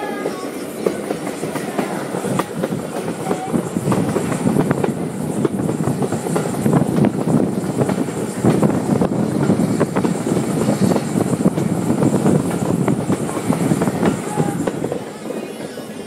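Wind rushes past an open window.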